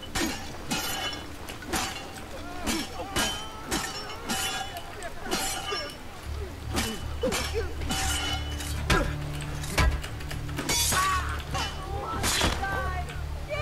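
Swords clash and ring in quick, repeated blows.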